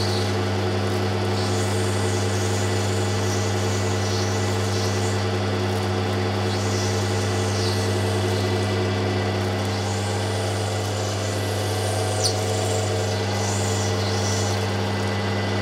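A stone scrapes and hisses against a wet spinning wheel in short bursts.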